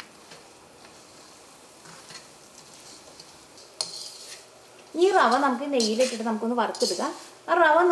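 Food sizzles softly in a hot wok.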